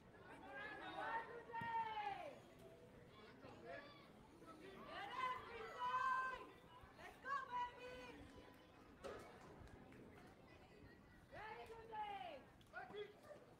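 Young girls shout and chant cheers outdoors.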